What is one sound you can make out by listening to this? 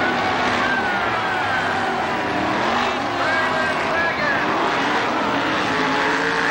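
Race car engines roar and rev loudly around a track.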